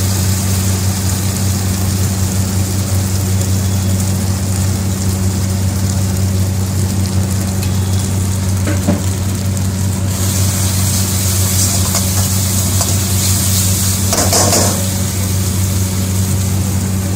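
Onions sizzle in hot oil in a wok.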